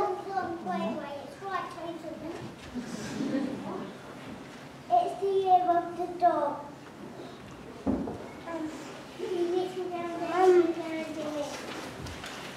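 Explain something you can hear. Young children sing together in a large room with echo.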